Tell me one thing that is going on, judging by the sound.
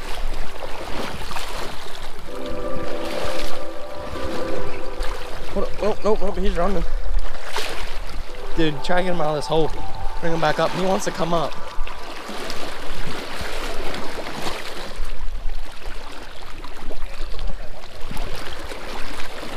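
A shallow river babbles and splashes steadily.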